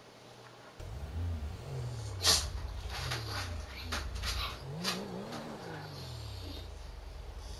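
A sports car engine revs up and down as the car pulls away.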